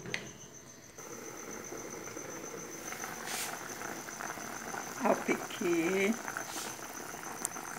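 Water bubbles and boils in a pot.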